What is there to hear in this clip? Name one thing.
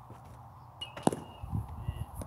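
A baseball smacks into a catcher's mitt in the distance.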